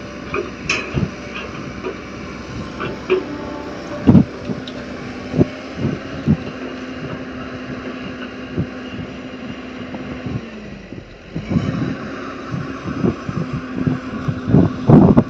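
Metal clanks and knocks as an excavator bucket swings.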